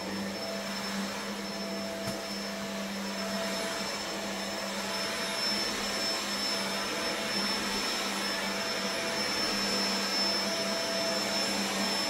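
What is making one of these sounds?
A vacuum cleaner hums and whines steadily as it runs over carpet.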